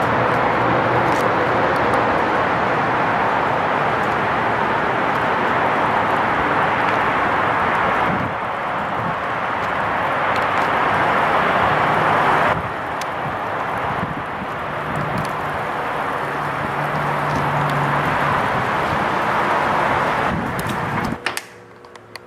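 A car drives steadily along a road, with a loud rush of road and wind noise.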